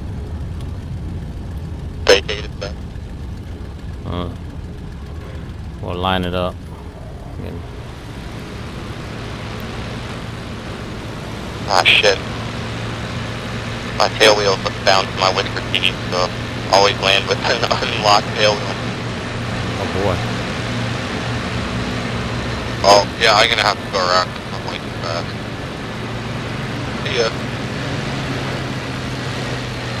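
An aircraft engine idles with a steady low rumble.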